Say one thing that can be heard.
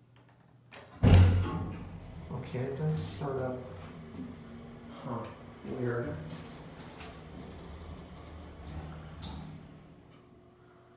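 An elevator hums and rumbles as it moves.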